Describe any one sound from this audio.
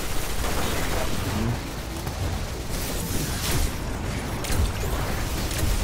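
Energy blasts explode with a loud crackle.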